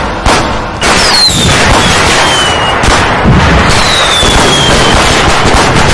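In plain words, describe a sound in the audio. Fireworks whistle as they fly.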